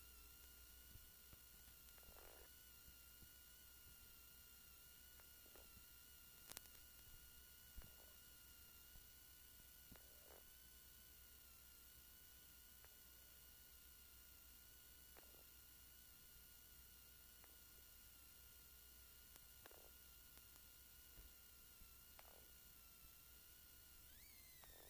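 A man reads out notes over an intercom.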